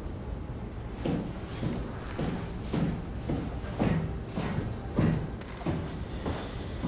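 Footsteps thud on metal stairs.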